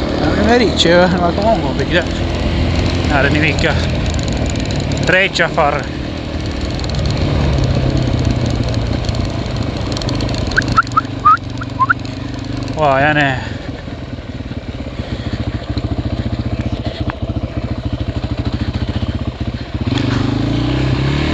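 A quad bike engine runs and revs loudly close by.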